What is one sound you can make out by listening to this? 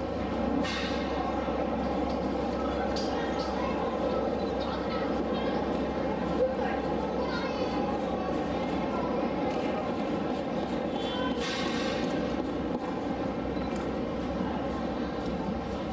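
Water splashes as a large animal swims and pushes a floating barrel.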